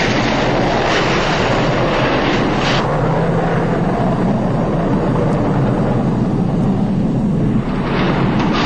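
A deep explosion roars and rumbles.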